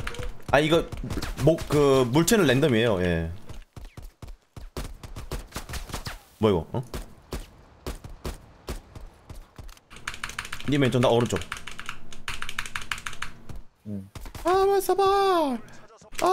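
A young man talks with animation close to a microphone.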